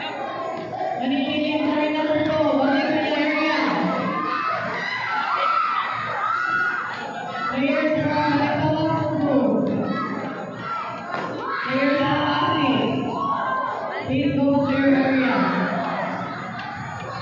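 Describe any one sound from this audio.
A man calls out loudly with long drawn-out words in a large echoing hall.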